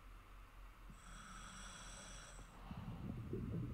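A scuba diver breathes in through a regulator with a hiss.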